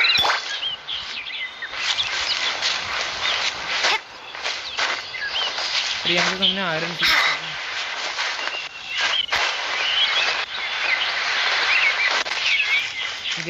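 Light footsteps patter quickly on grass.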